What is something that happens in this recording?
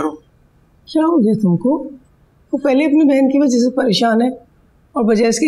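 An older woman speaks pleadingly, close by.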